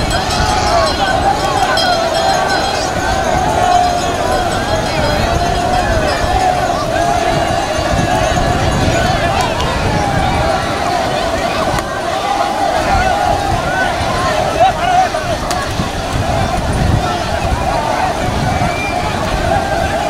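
A large crowd shouts and chants loudly outdoors.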